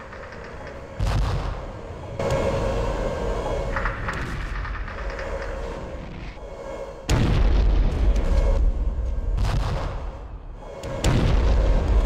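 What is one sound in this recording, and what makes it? A tank cannon fires with loud, booming blasts.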